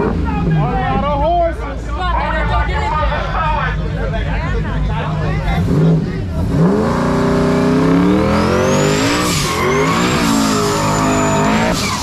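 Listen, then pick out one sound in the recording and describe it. A crowd of young men and women shouts and cheers close by.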